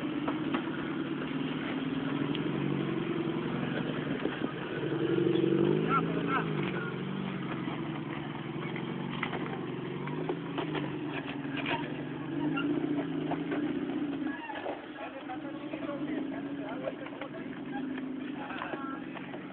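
An off-road vehicle's engine revs and labours as it climbs over rocks.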